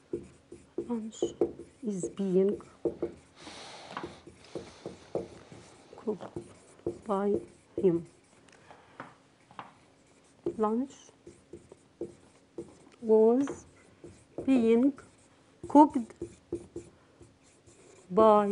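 A woman speaks clearly and steadily, explaining.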